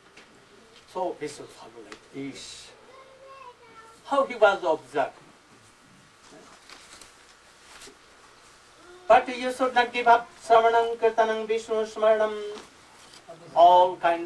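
An elderly man speaks calmly into a microphone, with pauses between phrases.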